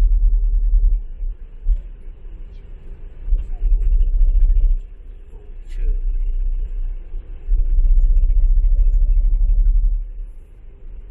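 Wind rumbles against the car in gusts.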